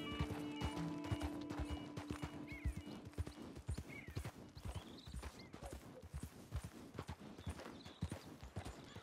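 Horse hooves thud steadily on a dirt trail.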